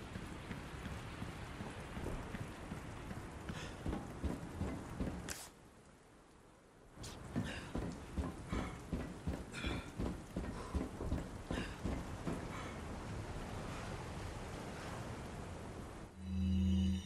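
Heavy footsteps clang on metal stairs and walkways.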